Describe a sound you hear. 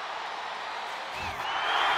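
A rock band plays music.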